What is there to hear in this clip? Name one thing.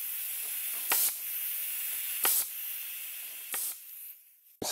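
A pneumatic staple gun fires staples with sharp snaps.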